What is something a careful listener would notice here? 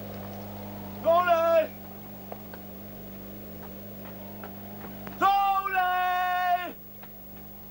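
A man calls out loudly from a distance, outdoors.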